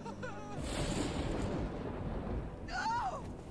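Thunder rumbles.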